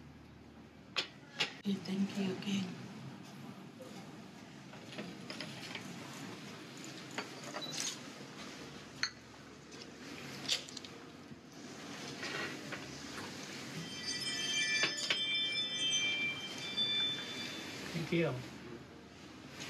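Porcelain cups clink against saucers.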